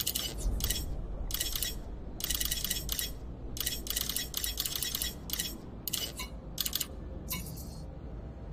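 Short electronic interface tones beep in quick succession.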